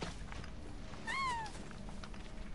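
A large bird gives a short rising squawk.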